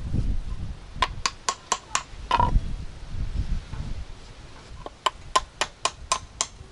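A hammer taps on a metal part.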